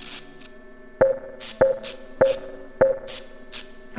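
A keypad beeps several times.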